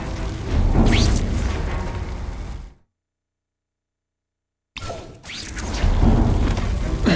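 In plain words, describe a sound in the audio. A deep, rumbling whoosh swells and fades away.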